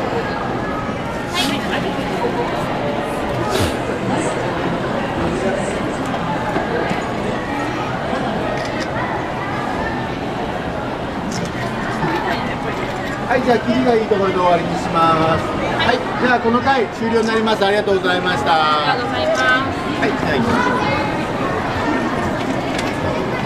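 Many voices murmur throughout a large, echoing hall.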